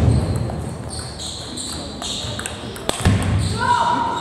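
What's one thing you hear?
A ping-pong ball clicks against paddles and the table in a quick rally.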